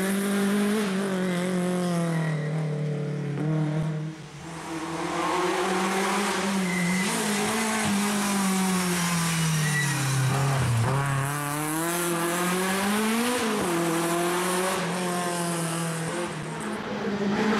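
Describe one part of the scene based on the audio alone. A rally car engine revs hard, rising and falling in pitch as the car races past.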